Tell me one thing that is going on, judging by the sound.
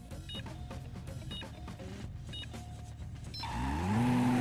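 Short electronic beeps sound in a steady countdown.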